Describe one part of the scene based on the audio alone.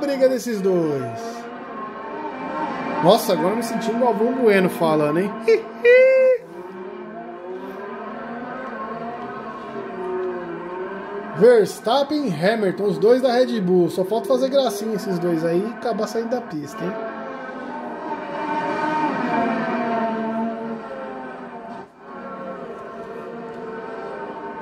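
Racing car engines scream at high revs, rising and falling as the cars shift gears.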